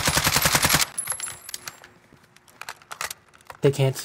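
A rifle's magazine clicks and clatters during a reload.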